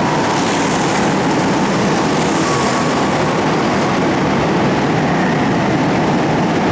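Go-kart engines whine and buzz loudly, echoing in a large hall.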